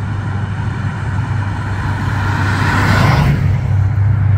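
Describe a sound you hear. A classic car drives past.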